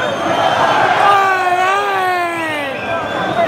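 A man nearby shouts and cheers.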